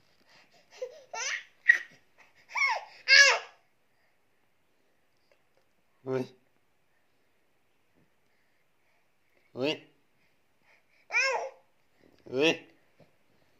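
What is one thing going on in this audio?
A baby squeals and laughs close by in short bursts.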